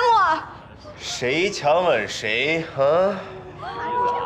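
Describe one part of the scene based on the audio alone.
A young man groans and gasps in pain.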